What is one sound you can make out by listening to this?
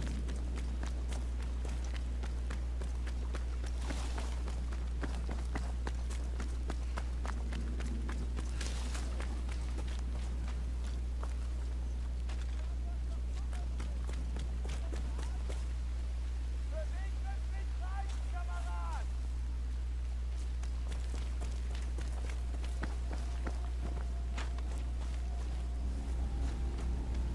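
Footsteps crunch on gravel and rock.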